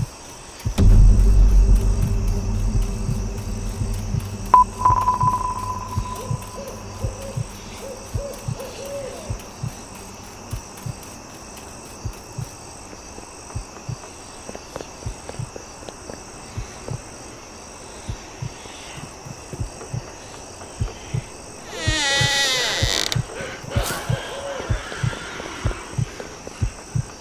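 Quick footsteps thud steadily on a floor.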